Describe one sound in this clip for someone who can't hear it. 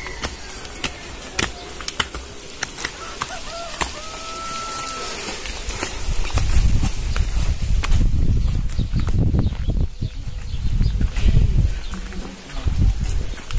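Sandals slap and scuff on the ground with footsteps.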